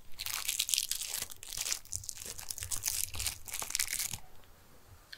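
A plastic package crinkles and rustles close up.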